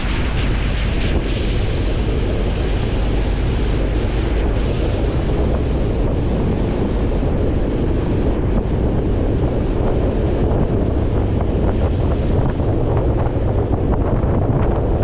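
A vehicle engine rumbles steadily up close.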